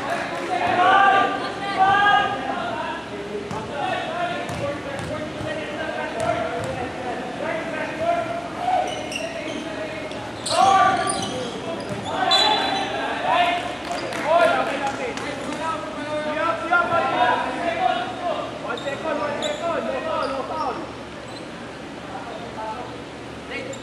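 Men shout and call out to each other in a large echoing gym.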